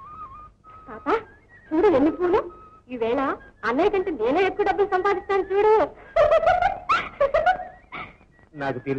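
A woman sings a lively melody, heard through an old film soundtrack.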